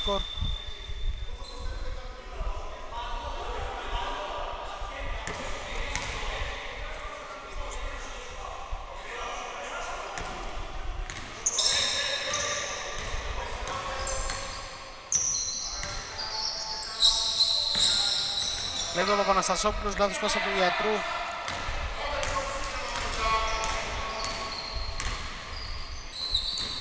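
Men shout and call out across a large echoing gym.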